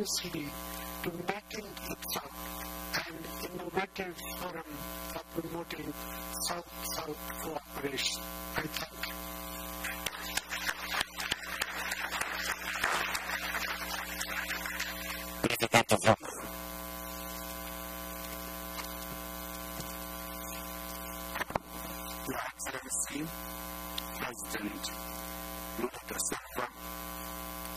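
A man speaks calmly into a microphone, heard over loudspeakers.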